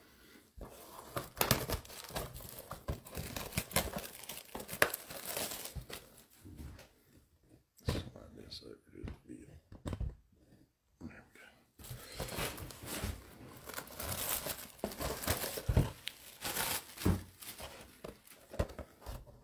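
Gloved hands handle a shrink-wrapped cardboard box, and the plastic wrap crinkles.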